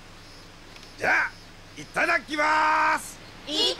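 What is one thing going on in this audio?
A man calls out cheerfully.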